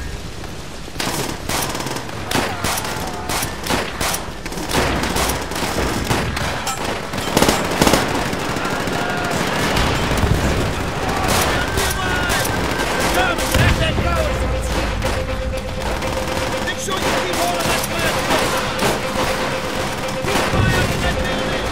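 Rifles fire in rapid, sharp bursts.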